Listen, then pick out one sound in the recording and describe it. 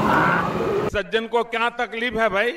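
An elderly man speaks forcefully into a microphone through loudspeakers.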